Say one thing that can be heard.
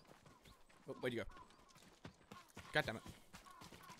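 Footsteps run quickly on a dirt path.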